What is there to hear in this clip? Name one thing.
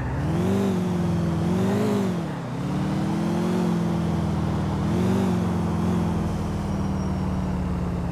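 A car engine hums and revs up and down as the car drives along.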